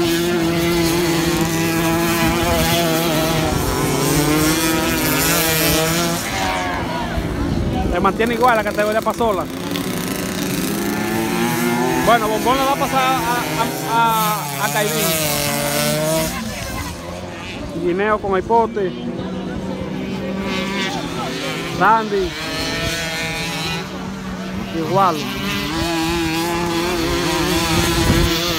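Motorcycle engines rev and whine loudly, rising and falling in pitch.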